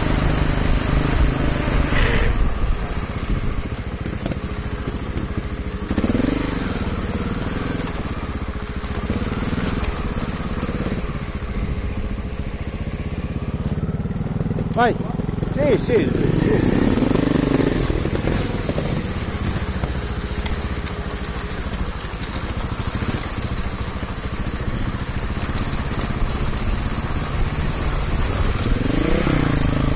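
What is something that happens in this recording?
Bicycle tyres roll and crunch over gravel and dry leaves.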